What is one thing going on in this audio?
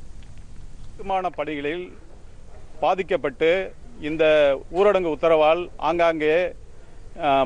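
A man speaks steadily into a microphone, close by.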